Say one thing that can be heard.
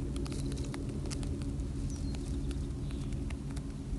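A rabbit nibbles dry hay.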